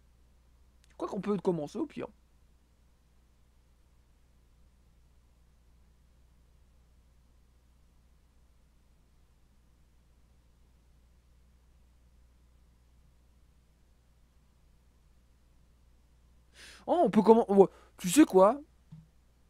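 A young man speaks into a close microphone with animation, in short bursts.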